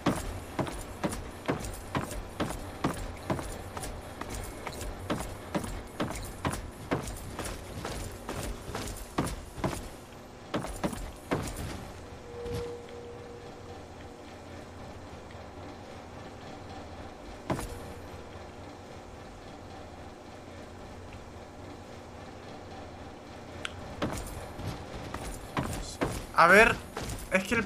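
Footsteps thud at a steady pace.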